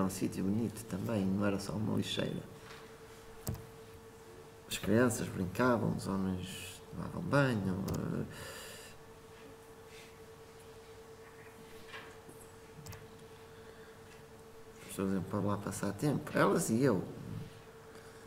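A young man talks calmly in a room, with pauses between phrases.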